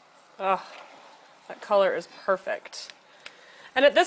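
Meat sizzles softly in a hot pot.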